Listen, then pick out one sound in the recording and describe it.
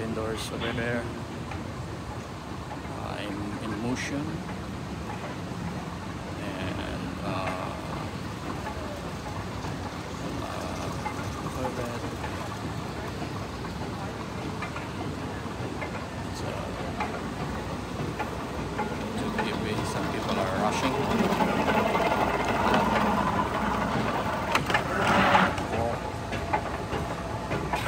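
A moving walkway hums and rattles steadily.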